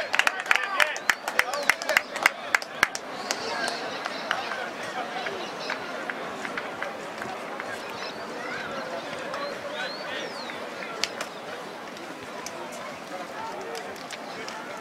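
A crowd of spectators murmurs and calls out outdoors.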